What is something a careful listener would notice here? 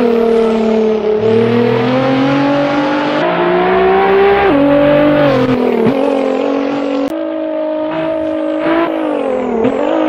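A twin-turbo V6 sports car engine revs hard, rising in pitch and dropping with each gear change.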